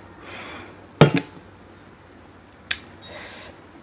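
A metal bowl clinks on a metal plate.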